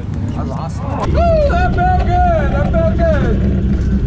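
A race car engine roars loudly from inside the car.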